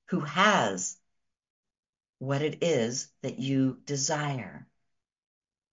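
A woman speaks warmly and clearly into a microphone.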